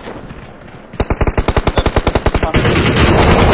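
A rifle fires in rapid bursts in a video game.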